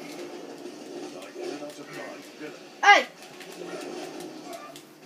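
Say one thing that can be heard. Video game sounds play from a television across a room.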